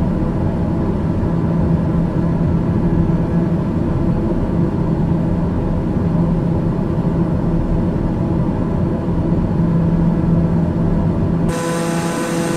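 A propeller engine drones steadily and low.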